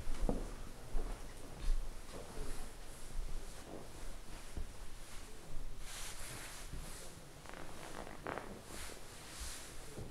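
Fabric rustles as a man shifts in a chair.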